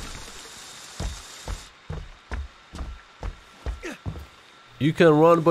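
Heavy footsteps thud steadily on a wooden floor.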